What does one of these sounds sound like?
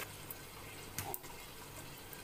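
A metal lid clanks down onto a pot.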